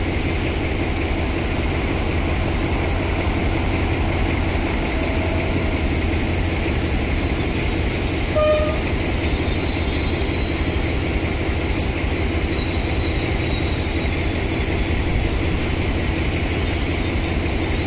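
A passenger train rolls past on the tracks.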